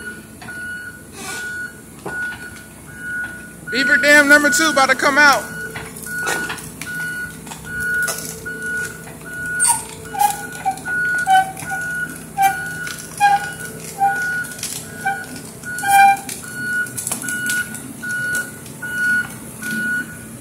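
An excavator engine idles with a steady low rumble nearby.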